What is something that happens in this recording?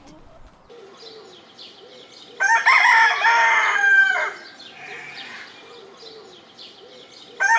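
Hens cluck softly nearby.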